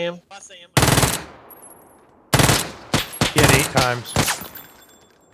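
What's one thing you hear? Rifle shots crack loudly in quick bursts.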